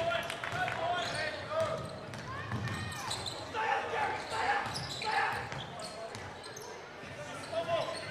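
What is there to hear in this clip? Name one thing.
A basketball bounces on the court with dull thuds.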